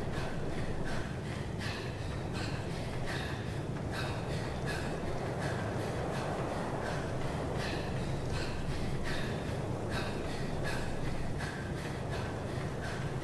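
Footsteps run steadily over sand and stone.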